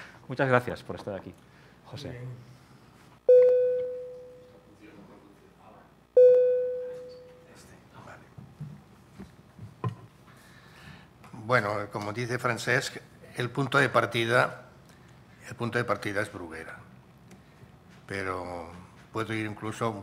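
A man speaks calmly into a microphone in a hall with some echo.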